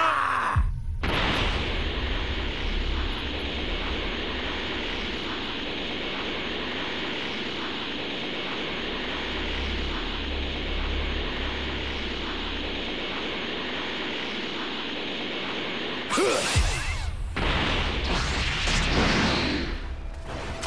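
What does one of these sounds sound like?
A rushing energy aura hums steadily as a figure flies.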